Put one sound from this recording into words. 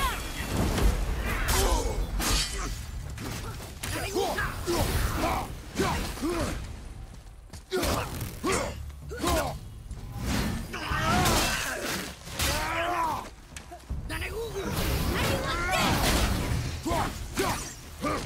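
Heavy blows thud and clang in a fight.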